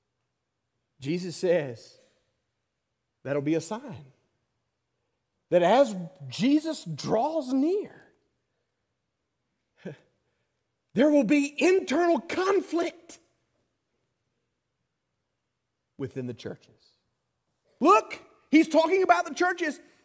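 A middle-aged man preaches with emphasis through a microphone, in bursts with pauses.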